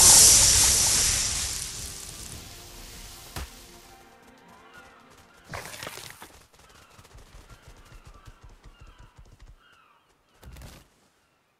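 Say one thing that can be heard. Small waves lap gently on a shore.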